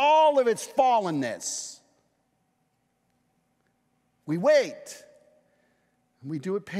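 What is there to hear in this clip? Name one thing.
A middle-aged man speaks with animation through a microphone, in pauses.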